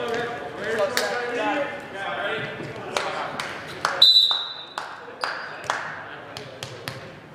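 A volleyball is struck with sharp smacks and bounces on the floor.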